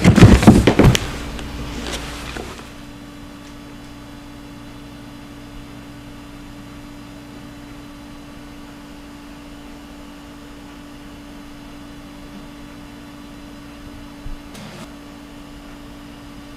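A computer hums steadily.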